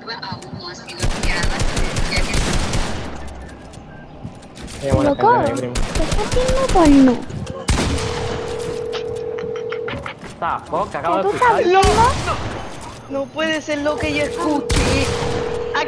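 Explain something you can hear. Rapid gunshots fire in quick bursts.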